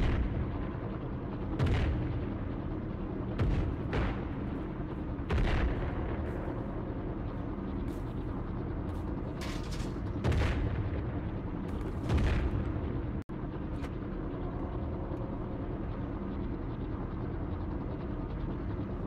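A helicopter engine and rotor drone steadily close by.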